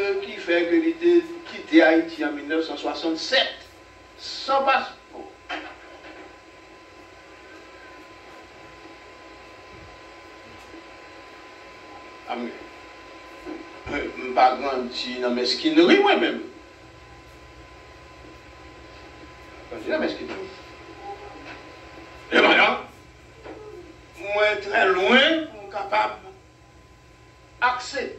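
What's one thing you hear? An elderly man preaches with animation into a microphone, in bursts separated by pauses.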